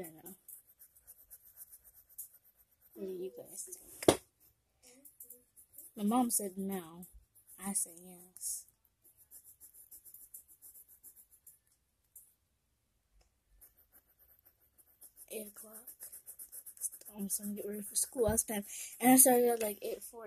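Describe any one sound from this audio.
A pencil scratches and shades on paper.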